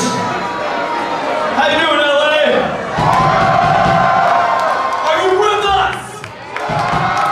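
A rock band plays loudly in a large echoing hall.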